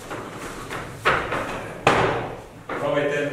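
A body hits a soft mat with heavy thuds.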